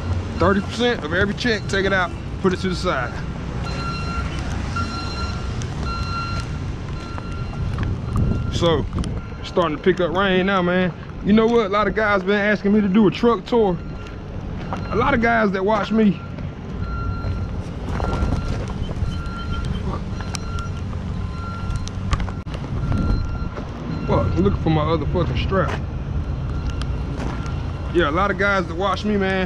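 Footsteps crunch on wet gravel.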